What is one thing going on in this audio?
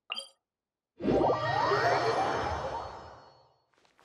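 A magical whoosh swells and fades away.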